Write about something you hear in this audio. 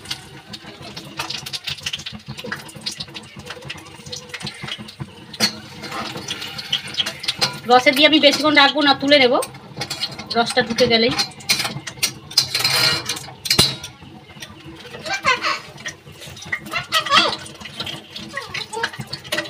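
A metal spatula scrapes and taps against a frying pan.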